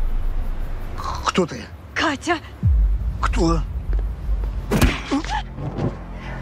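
A man speaks angrily and strained, close by.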